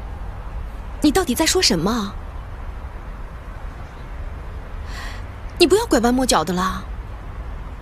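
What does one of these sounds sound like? A young woman speaks in a pleading, upset voice.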